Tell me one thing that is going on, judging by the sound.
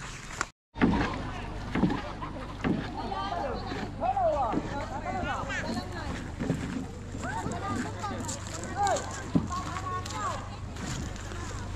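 Children call out and shout excitedly nearby.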